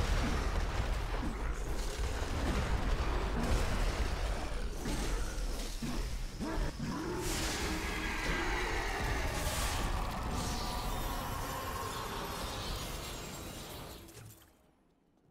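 Loud spell blasts and explosions rumble and crackle in a fight.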